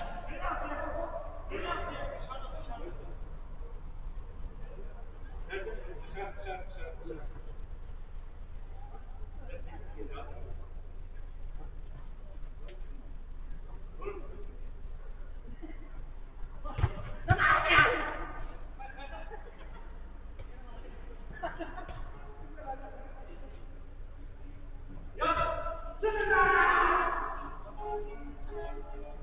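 Men shout to each other during a game in a large echoing hall.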